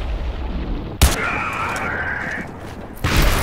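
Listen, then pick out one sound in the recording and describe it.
A gun fires a short burst.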